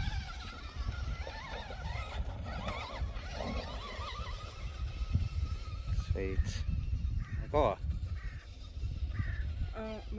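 A small electric motor whines, rising and falling in pitch.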